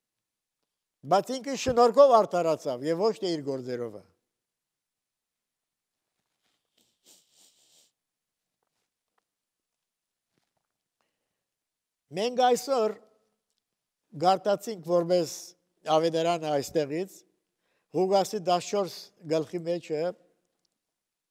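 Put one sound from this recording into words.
An elderly man speaks slowly and deliberately into a microphone, with pauses.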